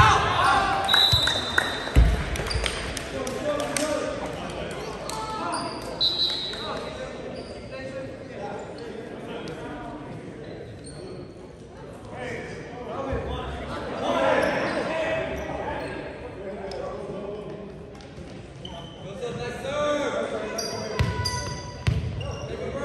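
A volleyball thuds against hands and the floor in a large echoing gym.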